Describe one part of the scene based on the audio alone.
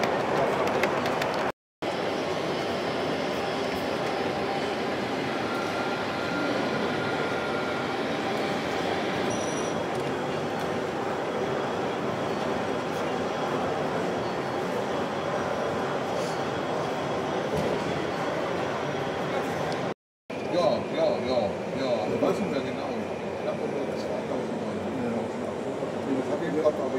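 A crowd of visitors murmurs in a large hall.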